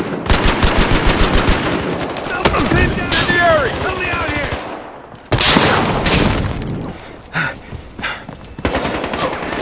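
Gunshots fire in rapid bursts, with loud single blasts.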